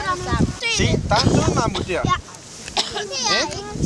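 A man talks to a group of children outdoors.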